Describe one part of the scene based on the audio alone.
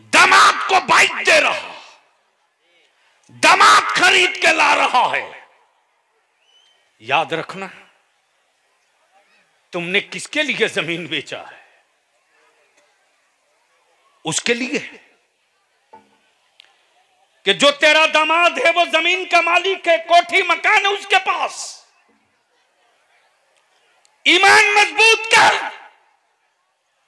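A man preaches loudly and with fervour through a microphone and loudspeakers, in bursts broken by pauses, at times chanting in a drawn-out tone.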